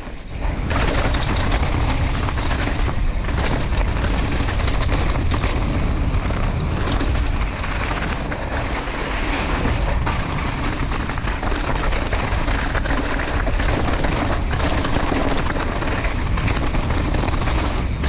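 Bicycle tyres rumble and crunch over a rough dirt and rock trail.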